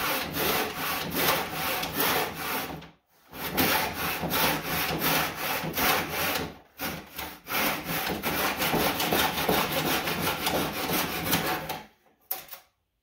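A file rasps against metal in quick, steady strokes.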